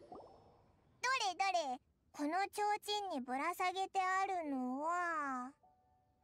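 A young girl speaks with animation through a loudspeaker.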